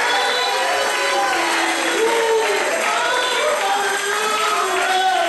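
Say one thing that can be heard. A congregation of men and women sings along with fervour.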